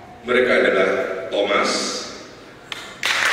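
A man speaks loudly through a microphone in an echoing room.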